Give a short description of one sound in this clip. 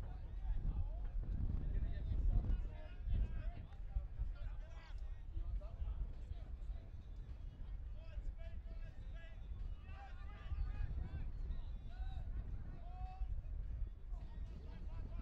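Men shout and call to each other from a distance outdoors.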